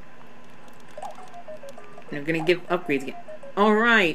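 A cheerful electronic game tune plays with short chiming notes.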